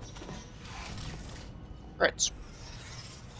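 A heavy metal door slides shut with a loud clunk.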